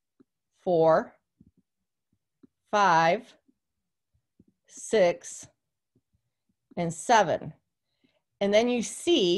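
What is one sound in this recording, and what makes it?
A woman speaks calmly and slowly into a close microphone, with pauses.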